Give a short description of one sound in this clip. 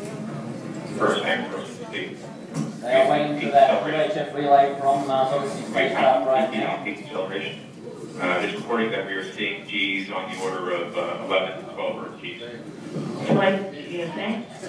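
A man speaks calmly over a loudspeaker.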